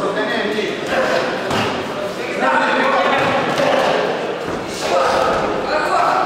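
Boxing gloves thud against a body.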